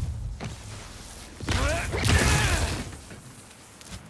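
A body thuds onto a hard rooftop.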